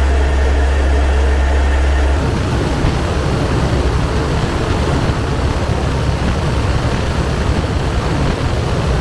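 Aircraft engines drone loudly and steadily.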